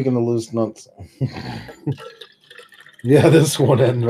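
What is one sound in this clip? Liquid pours from a flask into a cup.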